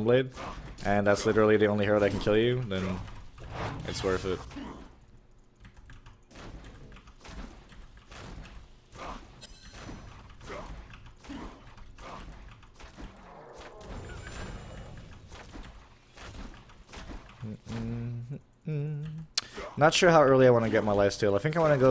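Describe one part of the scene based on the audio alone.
Video game combat sound effects clash and zap.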